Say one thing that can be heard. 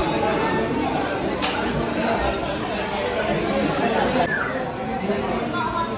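Many voices chatter in a busy room.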